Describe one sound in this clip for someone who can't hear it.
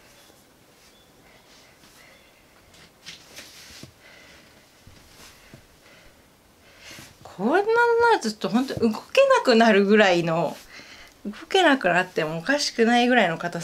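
Hands press and rub softly against cloth.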